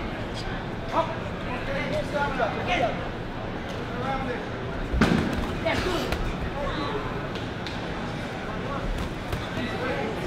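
Boxing gloves thud against a body.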